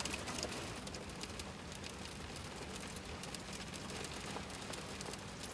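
A man handles small objects with soft clicks and rustles.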